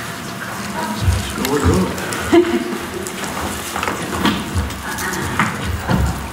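Footsteps thud as several people walk about.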